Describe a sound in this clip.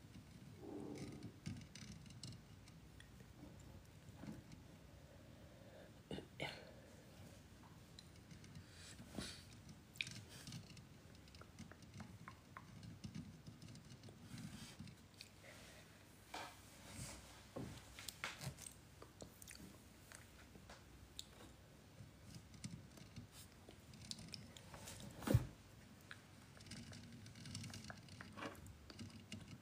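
A young woman whispers softly and very close to a microphone.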